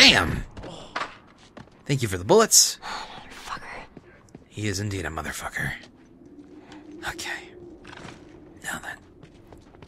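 Footsteps walk slowly across a wooden floor.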